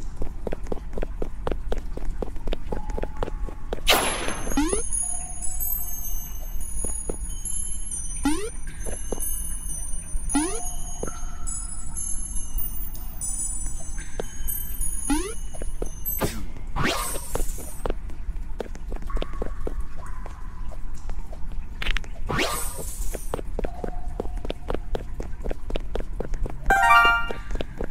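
Quick light footsteps patter on a hard surface.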